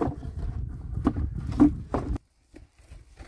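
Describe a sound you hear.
Plastic bowls knock and clatter together.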